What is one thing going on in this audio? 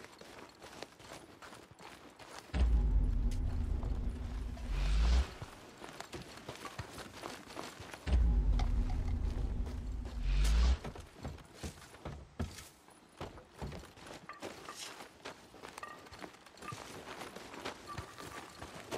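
Footsteps thud quickly over dirt and wooden boards.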